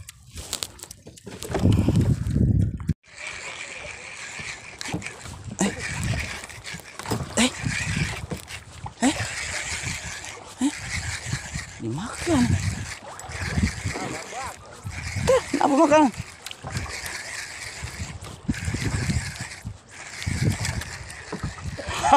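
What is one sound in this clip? Water splashes against a small boat's hull.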